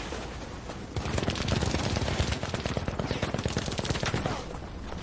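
Footsteps crunch quickly over snowy ground.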